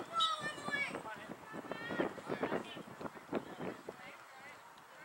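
Young players shout to each other across an open field.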